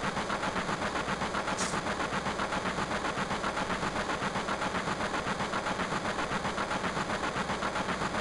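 Video game music plays with a steady, fast pulsing beat.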